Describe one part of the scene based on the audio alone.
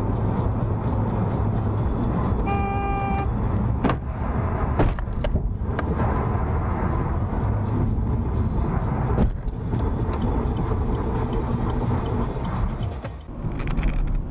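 Wind rushes loudly past a moving car.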